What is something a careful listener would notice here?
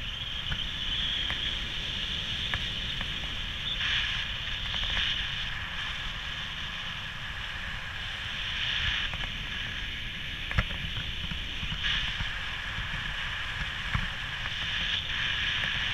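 A snowboard scrapes and hisses over snow, swelling at each turn.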